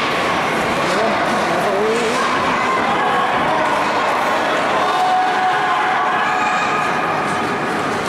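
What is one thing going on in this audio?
A crowd of spectators chatters in an echoing arena.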